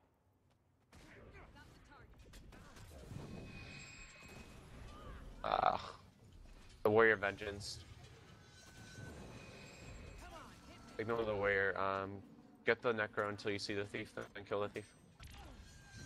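Magic blasts whoosh and crackle during a fight.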